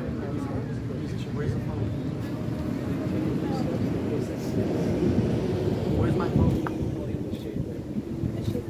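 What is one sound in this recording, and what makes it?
A small crowd claps and cheers.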